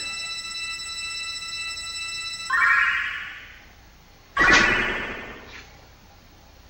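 Bright game chimes ring and sparkle.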